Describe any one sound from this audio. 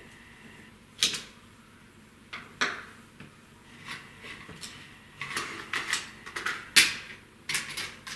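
Plastic parts knock and clack on a hard surface.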